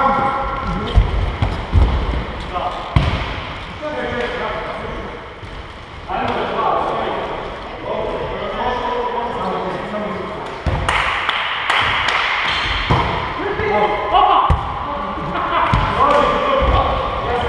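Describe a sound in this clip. Men call out to each other across a large echoing hall.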